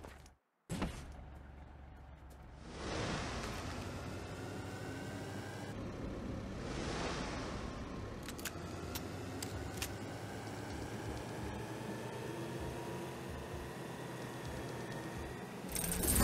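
Tyres rumble over rough ground.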